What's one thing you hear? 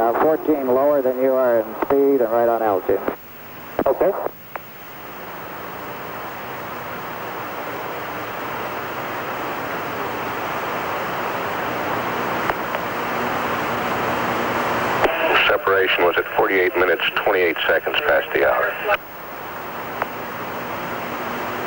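A jet engine roars steadily nearby.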